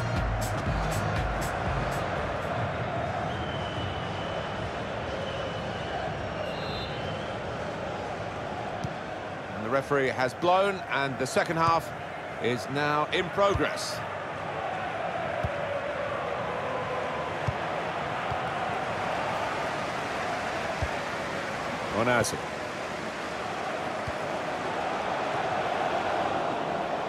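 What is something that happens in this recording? A large stadium crowd roars and murmurs.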